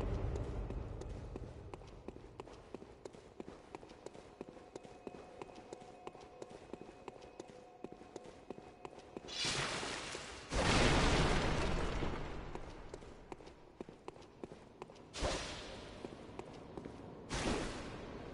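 Footsteps run steadily over stone in a large echoing hall.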